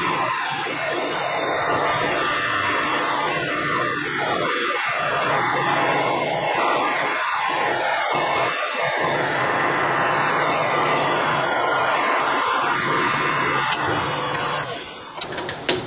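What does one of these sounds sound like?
A lathe tool scrapes as it cuts metal.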